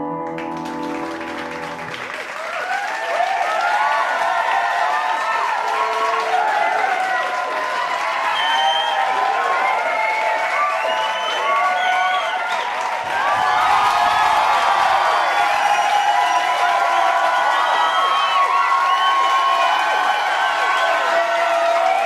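A piano plays a slow melody.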